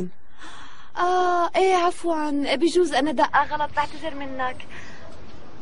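A woman talks into a phone.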